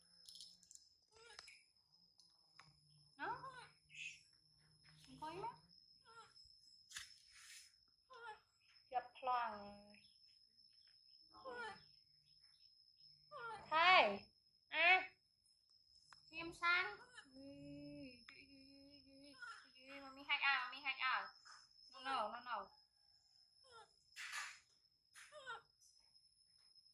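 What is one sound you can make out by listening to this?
A baby monkey squeaks and chirps.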